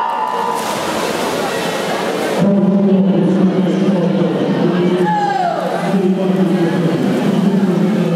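Swimmers splash and churn the water.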